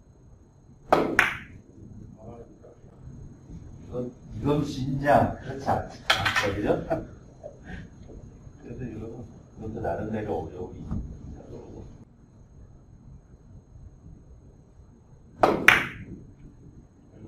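Billiard balls clack against each other and the cushions.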